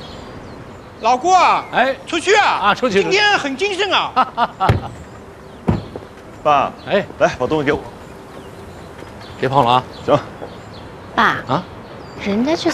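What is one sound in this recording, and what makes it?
An older man speaks cheerfully outdoors.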